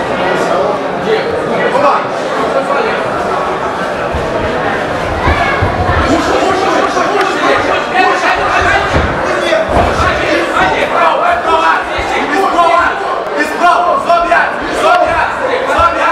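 A crowd of spectators shouts and cheers close by.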